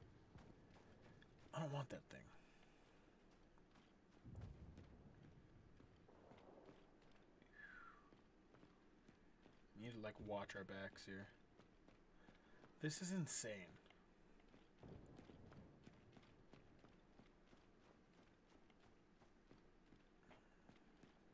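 Heavy footsteps clank steadily on a hard floor.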